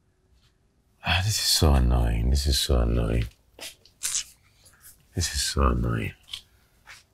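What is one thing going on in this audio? A man speaks loudly and with distress close by.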